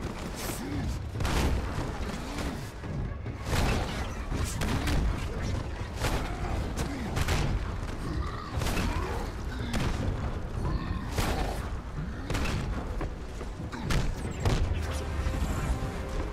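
Heavy blows thud and crash again and again.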